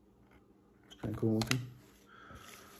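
A man speaks briefly close by.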